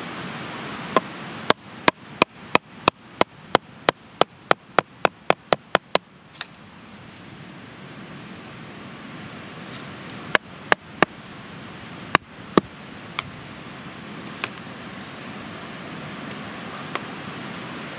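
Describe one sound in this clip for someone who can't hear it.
A wooden stick knocks sharply on a knife blade, splitting wood in quick, even blows.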